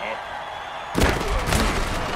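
Armoured players crash together in a heavy tackle.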